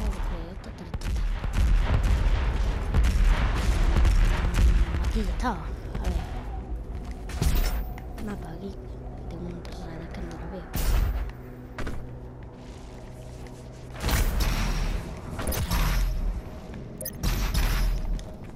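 A gun fires with loud blasts.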